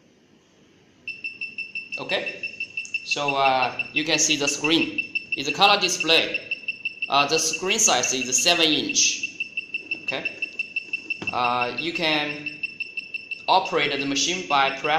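An electronic device beeps rapidly and steadily.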